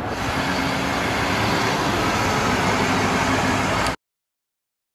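Traffic noise fills a busy street outdoors.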